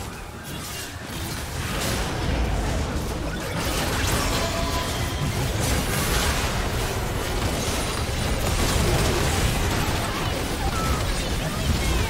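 Magic blasts and clashing hits crackle and boom in a busy fight.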